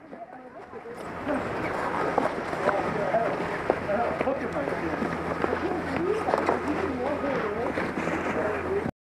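Skis and snowboards scrape and slide over packed snow.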